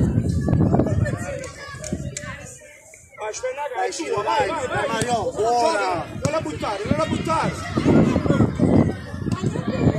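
Young players shout and call out to each other across an open outdoor field.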